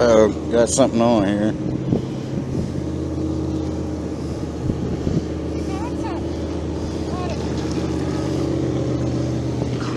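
A fishing reel clicks as it is wound in.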